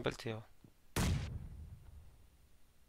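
A smoke grenade bursts with a dull boom.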